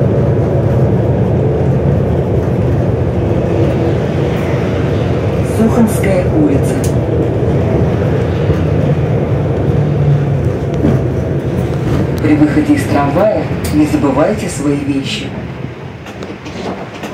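A bus engine drones steadily as the bus drives along a road.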